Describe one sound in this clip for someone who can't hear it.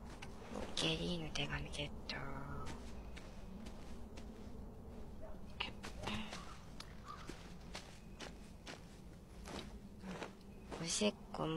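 Footsteps tread on ground at a steady walking pace.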